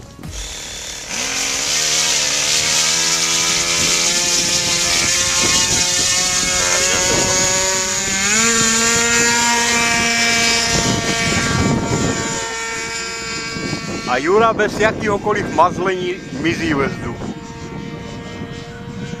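A model airplane's small engine buzzes loudly, revving up and down, then fades as the plane flies away.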